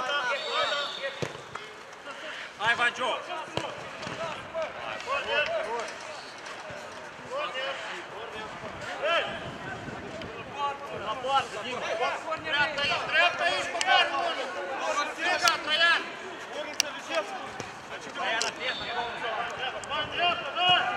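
Men shout and call to each other across an open outdoor pitch.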